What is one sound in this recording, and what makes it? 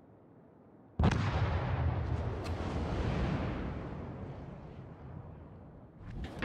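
Heavy gunfire booms with a long rumbling roar.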